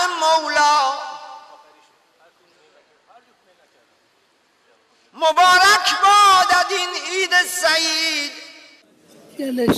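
Men's voices chant loudly and tunefully in a large echoing hall.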